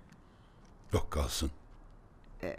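An older man speaks briefly nearby.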